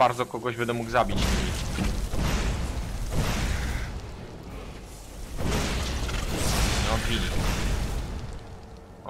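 Magic fire blasts roar and crackle in bursts.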